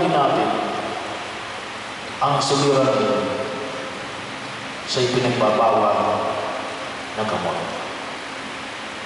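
An elderly man chants into a microphone, heard through loudspeakers in an echoing hall.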